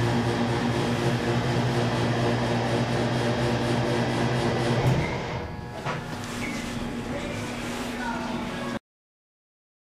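An elevator motor hums loudly and steadily.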